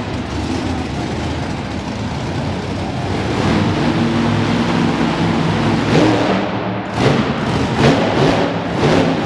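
A monster truck engine roars and revs loudly in a large echoing arena.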